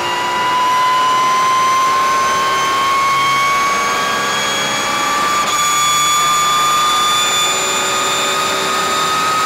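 A racing car engine roars loudly at high revs, its pitch slowly climbing.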